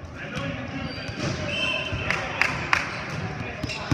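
A volleyball bounces on a wooden floor.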